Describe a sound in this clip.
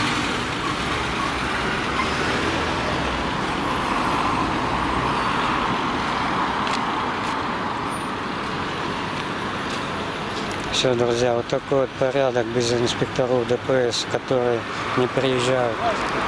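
A car engine hums as the car rolls slowly past close by.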